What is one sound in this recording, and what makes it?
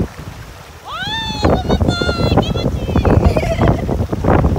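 A young woman squeals and laughs nearby.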